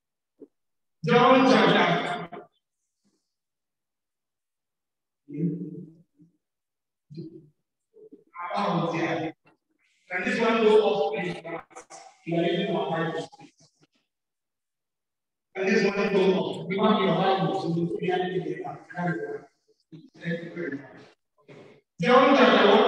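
A man preaches with animation into a microphone, his voice echoing in a large hall.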